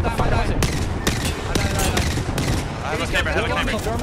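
Rapid gunfire cracks from a video game.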